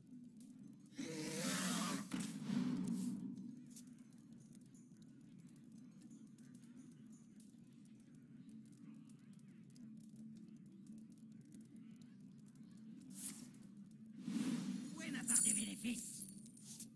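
Video game sound effects burst out as cards are played.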